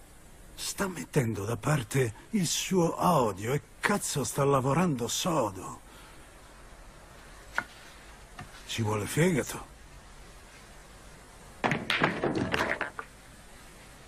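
A man speaks slowly and playfully up close, with a mocking tone.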